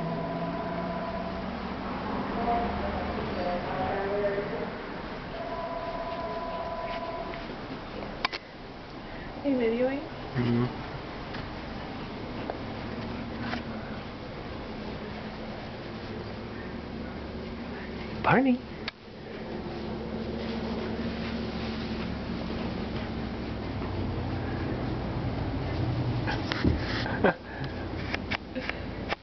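A puppy's claws scrape and tap on wooden boards.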